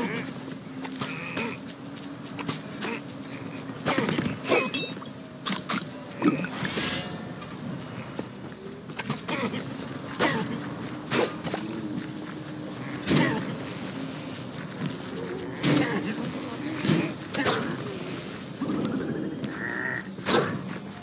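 Sword slashes and thuds land in quick bursts.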